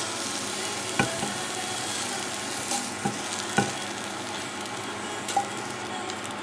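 A spatula taps against a plate as food is set down.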